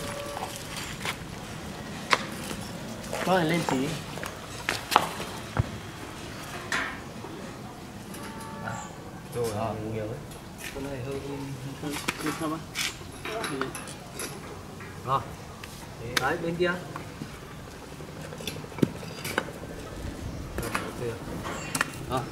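A metal wire grid scrapes and clinks on the ground.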